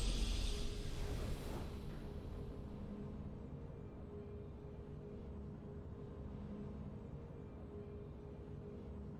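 A triumphant game fanfare rings out, then settles into soft, steady music.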